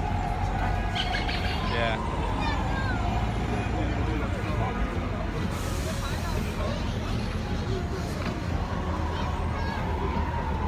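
A crowd murmurs and chatters nearby on a busy street.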